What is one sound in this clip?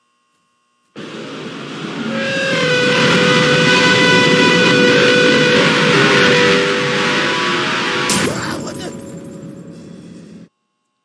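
A creature lets out a loud, shrill screeching roar.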